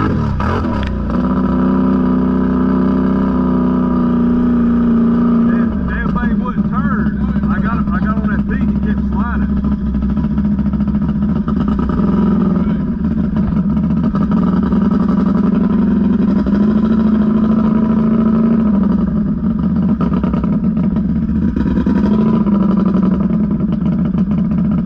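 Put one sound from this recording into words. An all-terrain vehicle engine idles and revs loudly close by.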